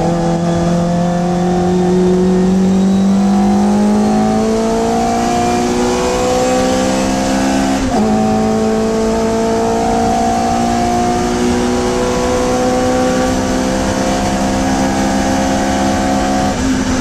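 A small four-cylinder Hillman Imp race car engine revs hard through the gears, heard from inside the cabin.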